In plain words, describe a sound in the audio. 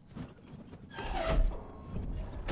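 A heavy metal lever clunks as it is pulled down.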